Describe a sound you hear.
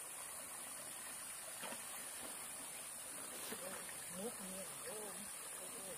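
A pole swishes and splashes in pond water.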